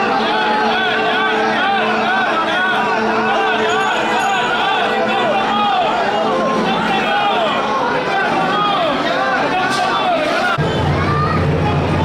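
A large crowd chants and calls out loudly outdoors.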